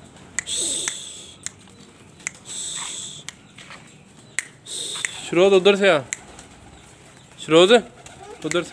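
Pigeons flap their wings in short bursts.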